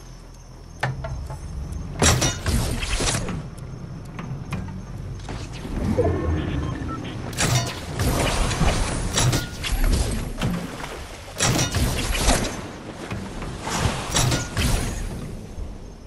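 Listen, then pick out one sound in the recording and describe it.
A large ball rumbles as it rolls and bounces over the ground.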